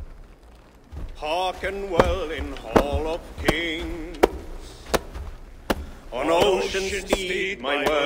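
A man speaks in a deep voice, slowly reciting verse in a large echoing hall.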